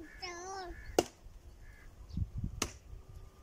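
A wooden pole knocks sharply against the ground.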